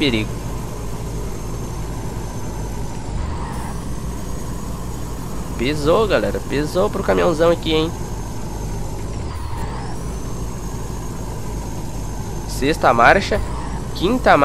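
A truck engine drones steadily while driving on a highway.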